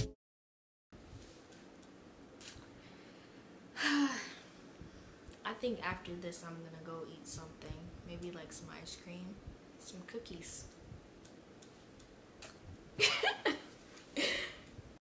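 A young woman talks casually and softly, close by.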